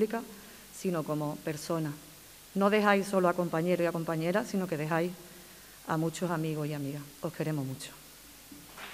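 A woman speaks calmly into a microphone in a large room.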